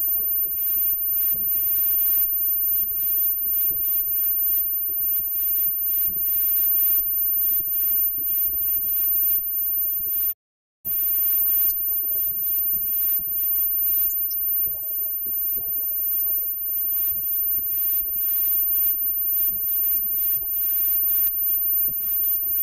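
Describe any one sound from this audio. A live band plays loud electric guitars.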